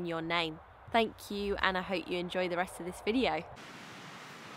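A young woman talks cheerfully and close up.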